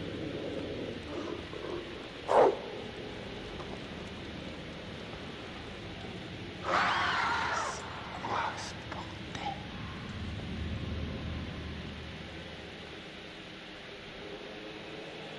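Footsteps scuff slowly on a hard floor.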